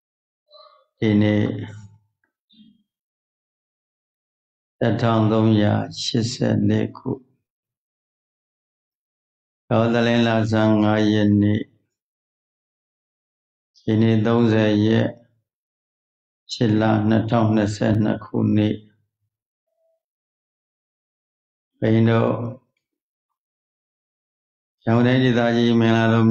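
An elderly man chants slowly in short phrases into a microphone, heard through an online call.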